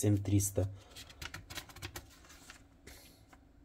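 A glossy paper page rustles as it is turned.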